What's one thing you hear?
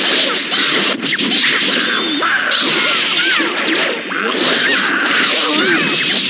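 Cartoon creature cries squeak in high bursts.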